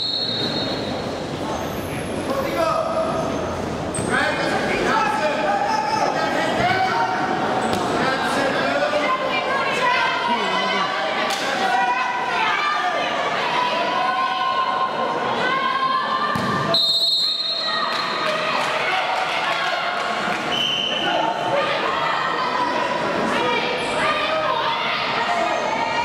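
A crowd of spectators shouts and cheers loudly in a large echoing hall.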